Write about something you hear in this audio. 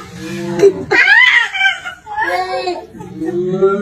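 A baby whines and cries briefly close by.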